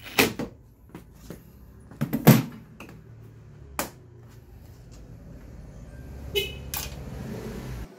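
Plastic body panels knock and click as hands fit them together.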